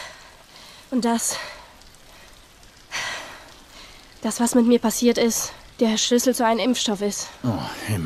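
A young girl speaks quietly and earnestly.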